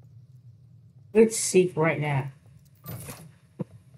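A key turns and clicks in a door lock.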